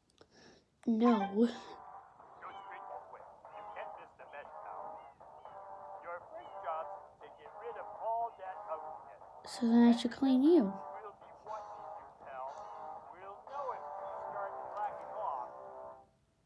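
Cheerful game music plays through a small speaker.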